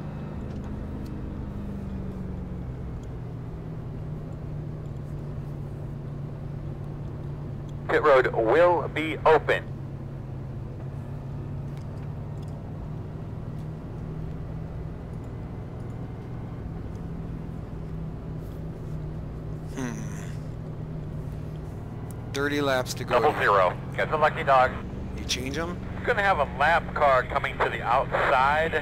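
A race car engine drones steadily at high revs.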